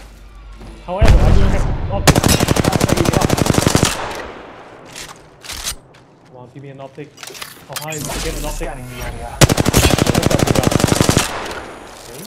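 A rapid-fire gun shoots loud bursts.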